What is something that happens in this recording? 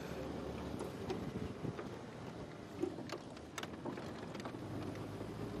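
A vehicle rattles and bumps over a rough dirt track.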